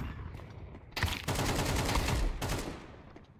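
A rifle fires a rapid burst of shots, loud and close.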